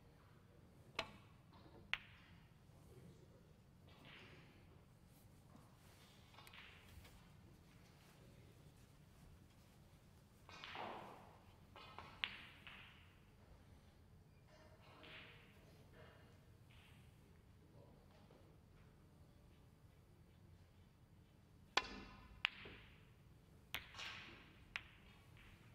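Snooker balls click sharply against each other and the cue.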